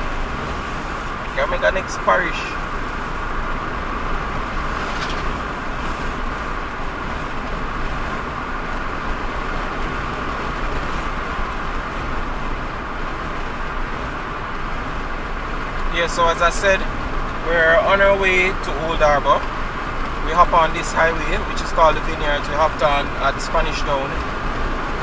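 A car engine hums steadily with tyres rolling on the road.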